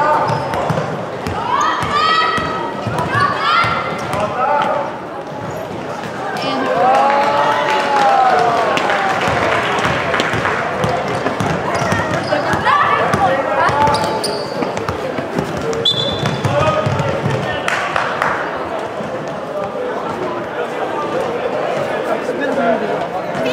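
Young players and spectators call out and shout in a large echoing hall.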